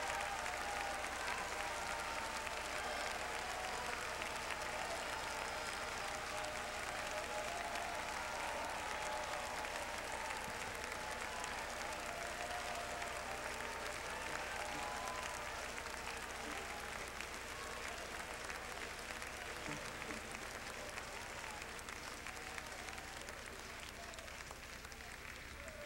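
A large crowd cheers and shouts, slowly growing quieter.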